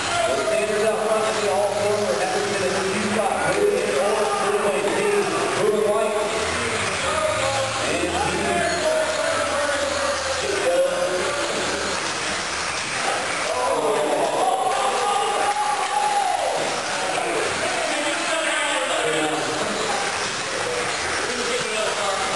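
Small electric motors whine and rise and fall in pitch as model cars race by.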